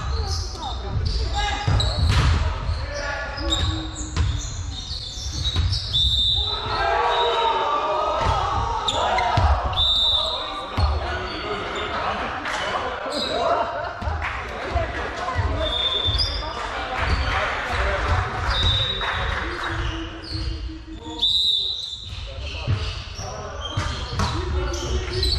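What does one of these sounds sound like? A volleyball thumps off hands and arms.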